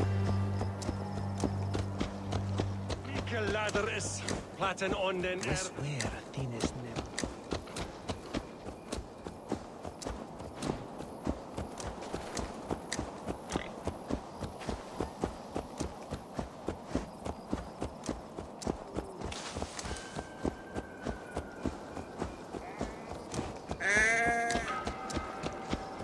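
Hooves thud steadily on a dirt path as a horse trots.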